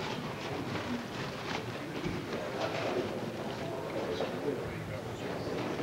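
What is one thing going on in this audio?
Footsteps shuffle as people walk past.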